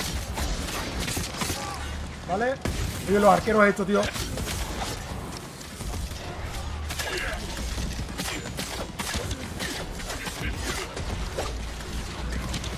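Swords clash and slash in quick bursts.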